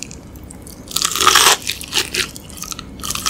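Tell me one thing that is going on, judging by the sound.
A woman bites into crispy fried chicken with a loud crunch, close to a microphone.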